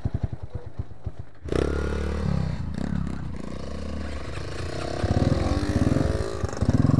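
A dirt bike engine revs and sputters close by.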